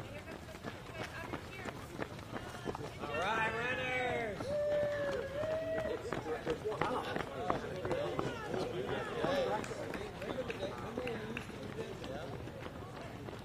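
Many runners' footsteps patter steadily on pavement.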